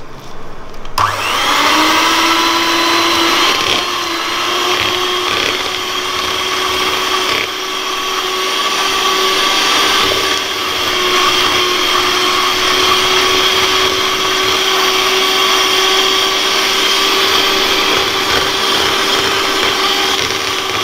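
An electric hand mixer whirs steadily, beating in a metal bowl.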